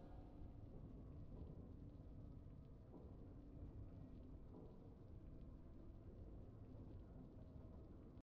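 Triumphant video game music plays steadily.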